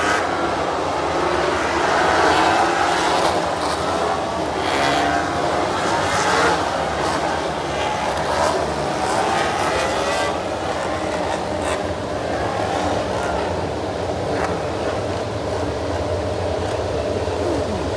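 Racing motorcycle engines scream past at high speed, rising and falling in pitch.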